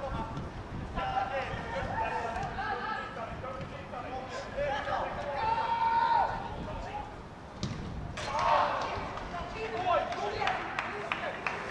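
Football players shout to each other across an open pitch outdoors.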